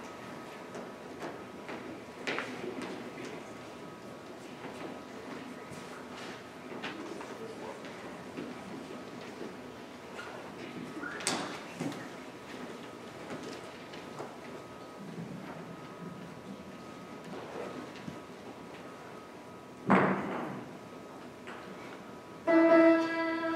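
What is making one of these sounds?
Children speak on a stage, heard faintly in a large hall.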